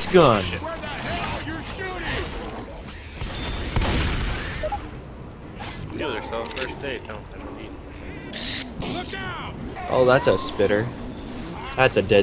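A shotgun fires a few loud blasts.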